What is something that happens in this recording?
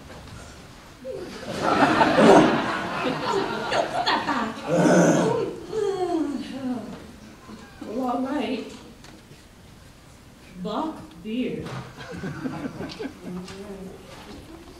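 A young woman speaks with animation, heard from across a hall.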